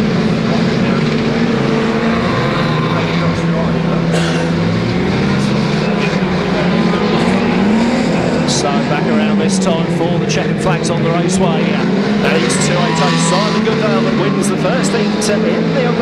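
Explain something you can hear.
Several car engines roar and rev loudly as cars race around a track.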